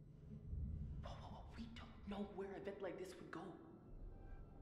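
A person speaks anxiously and quickly.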